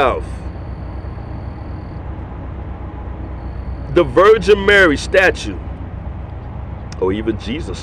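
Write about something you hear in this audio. A middle-aged man speaks calmly and closely, with pauses.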